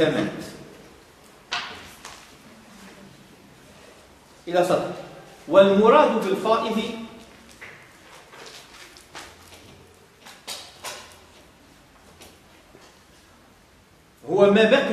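A man speaks calmly in an echoing room.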